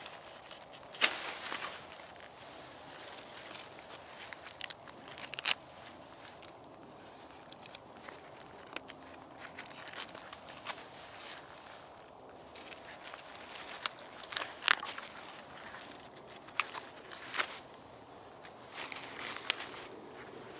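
A knife knocks sharply against wood.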